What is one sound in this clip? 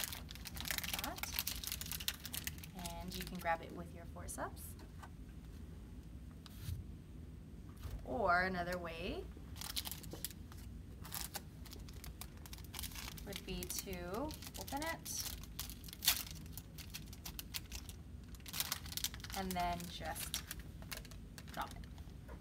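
Paper and plastic packaging crinkles and rustles.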